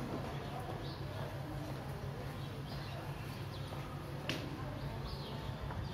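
Footsteps scuff on a hard tiled floor.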